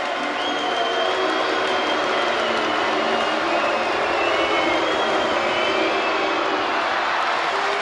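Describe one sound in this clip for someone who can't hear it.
A large crowd cheers and chants steadily in an echoing arena.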